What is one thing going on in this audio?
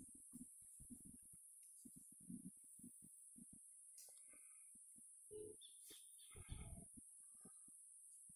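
A man climbing a tree trunk scrapes and thumps against the bark.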